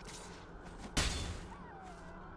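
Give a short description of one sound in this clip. A short magical whoosh sounds from a card game effect.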